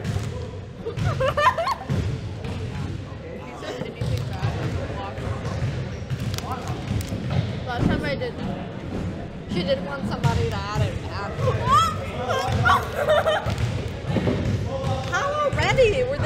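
A young girl laughs loudly.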